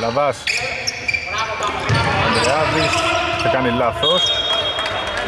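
Basketball shoes squeak on a hardwood court in a large echoing arena.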